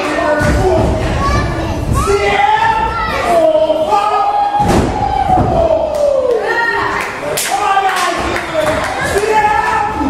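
A crowd of men and women nearby shouts and cheers loudly.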